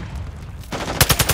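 A gun fires a quick burst of shots close by.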